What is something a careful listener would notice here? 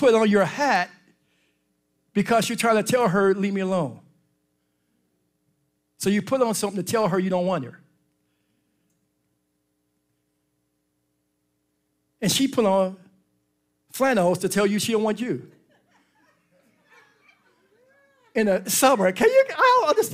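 A man speaks with animation through a microphone in bursts, pausing between phrases.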